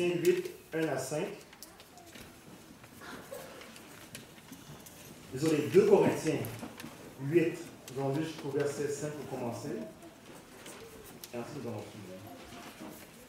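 A young man speaks calmly into a microphone, heard through a loudspeaker in an echoing hall, with long pauses.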